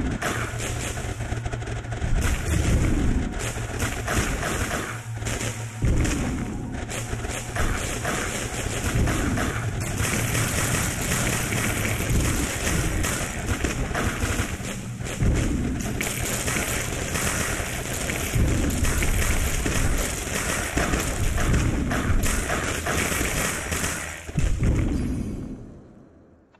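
Rapid electronic zaps and small bursts crackle as a video game battle plays.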